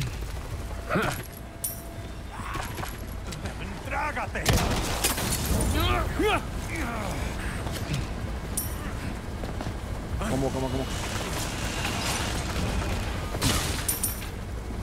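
Gunshots crack sharply.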